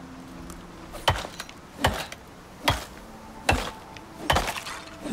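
A knife cuts into an animal carcass with sharp wet thuds.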